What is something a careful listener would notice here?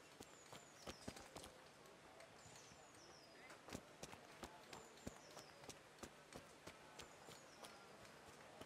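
Footsteps crunch steadily on a dirt road.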